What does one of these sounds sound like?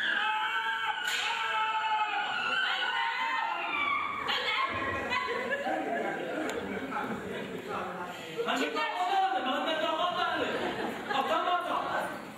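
A woman speaks loudly and with animation in an echoing hall.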